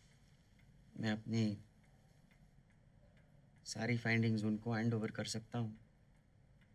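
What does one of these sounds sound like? A man speaks quietly and seriously, close by.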